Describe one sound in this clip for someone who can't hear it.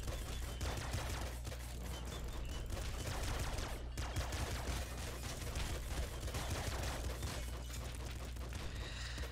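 Video game explosions boom.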